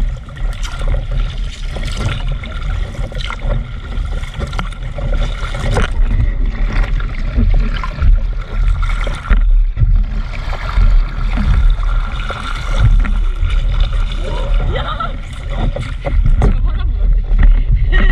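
Water splashes and laps against a paddleboard gliding along.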